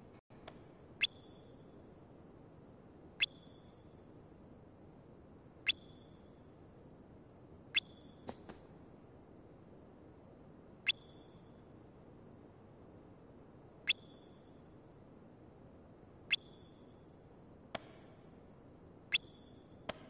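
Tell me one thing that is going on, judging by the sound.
A short, high blip sounds again and again at regular intervals.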